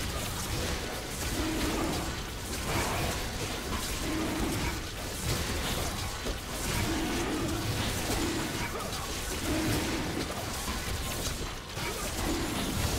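Magic blasts crackle and whoosh during a fight.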